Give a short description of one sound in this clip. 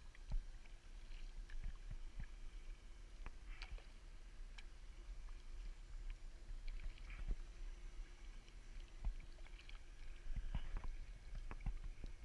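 Water drips and trickles off a paddle blade.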